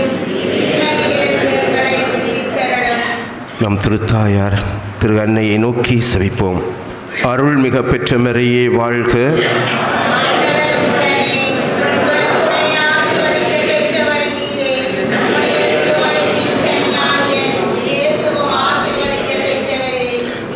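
A middle-aged man reads out calmly through a microphone, in a room with some echo.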